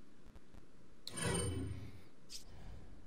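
A spray can hisses in a short burst.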